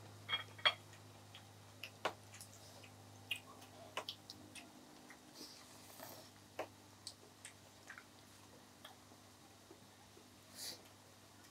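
Chopsticks click and tap against dishes.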